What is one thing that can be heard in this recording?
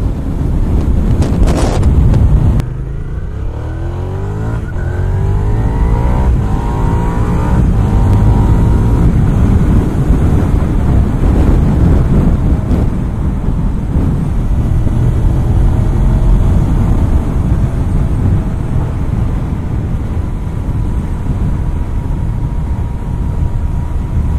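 Wind rumbles loudly over the rider.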